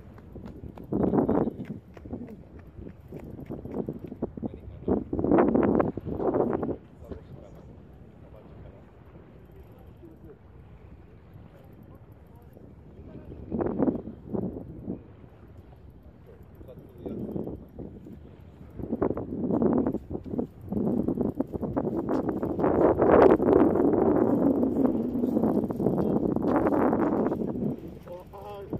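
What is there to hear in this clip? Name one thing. Small waves lap gently against a stone pier.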